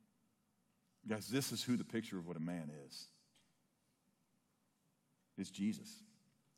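A middle-aged man speaks with emphasis into a microphone, with long pauses.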